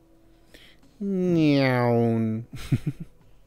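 A creature grunts and snorts close by.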